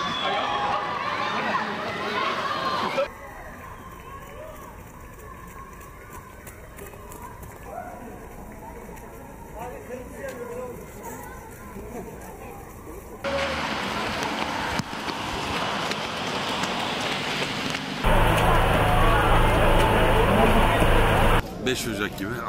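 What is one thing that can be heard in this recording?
Footsteps of many runners patter on a wet road.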